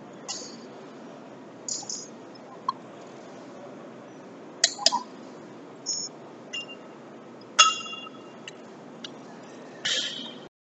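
A metal tool clinks and clicks against a wheel's lug nuts.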